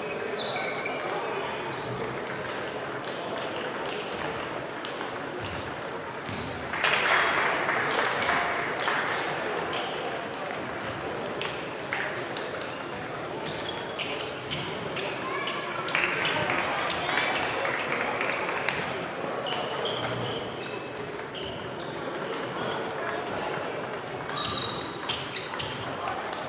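Table tennis balls click on tables and paddles throughout a large echoing hall.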